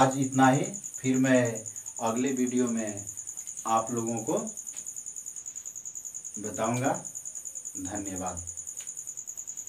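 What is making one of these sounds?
A man speaks calmly and clearly, close to the microphone.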